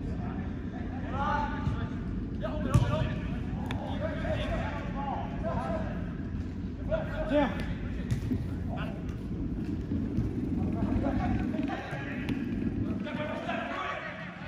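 Young players shout and call to each other across an echoing indoor hall.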